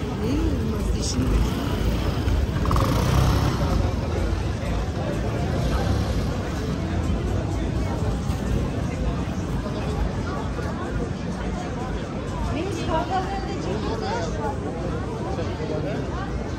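Adults talk nearby.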